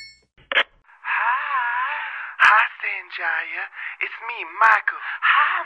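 A man speaks in a high, soft voice over a phone line.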